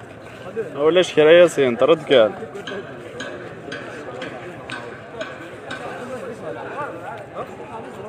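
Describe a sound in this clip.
People talk in the background.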